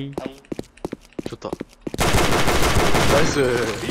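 A revolver fires several sharp shots.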